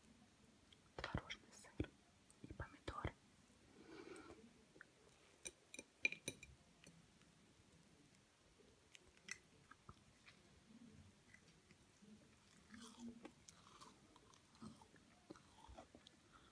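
Bread crust crackles and rustles as a sandwich is folded and handled.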